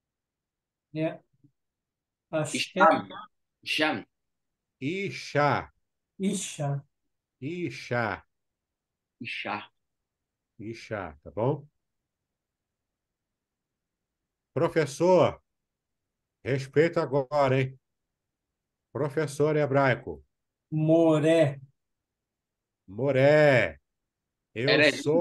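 A man speaks calmly, in short phrases with pauses, heard through a microphone in an online call.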